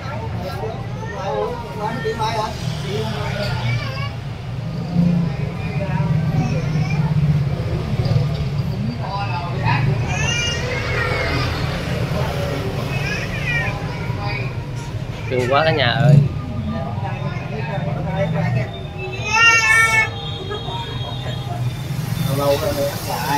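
A woman coos playfully to a baby nearby.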